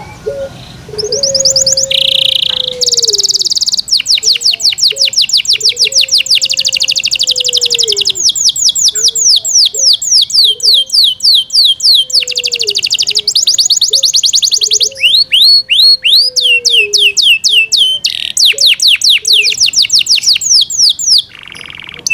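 A canary sings close by in fast, trilling, rolling phrases.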